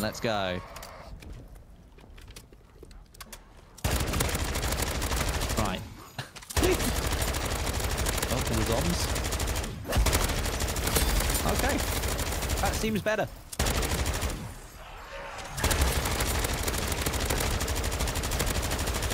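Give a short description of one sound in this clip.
A young man talks near a microphone.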